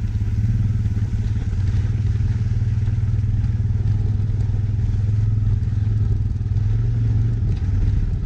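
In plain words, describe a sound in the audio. An all-terrain vehicle engine chugs steadily up close.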